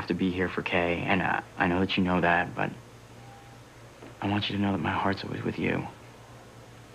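A young man speaks quietly and intensely, close by.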